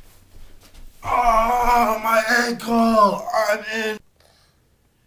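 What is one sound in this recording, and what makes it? A man shouts nearby.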